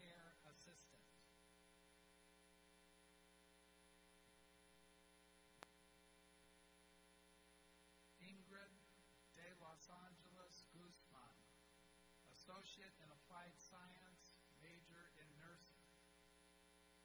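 A man reads out calmly over a loudspeaker in a large echoing hall.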